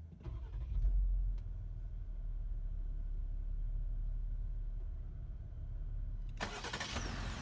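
An engine idles with a low, steady rumble inside a car.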